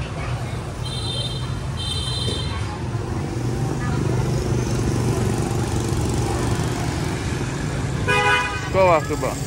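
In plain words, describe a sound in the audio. Motorbike horns beep in short bursts.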